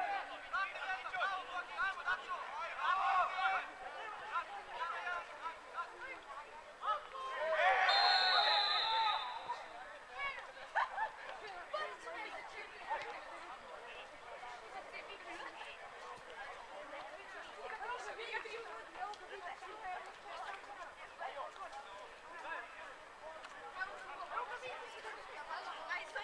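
Children shout and call out at a distance outdoors.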